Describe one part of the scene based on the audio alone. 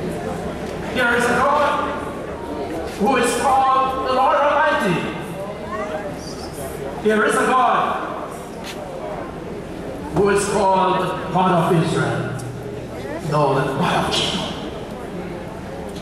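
An elderly man speaks with animation through a microphone, echoing in a large hall.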